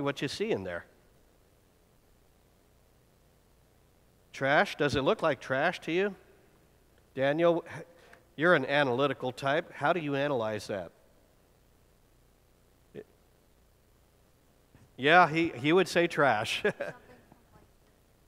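A man speaks calmly into a microphone, in a hall with a slight echo.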